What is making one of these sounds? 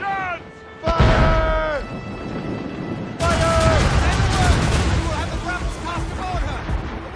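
Cannons fire with heavy booms.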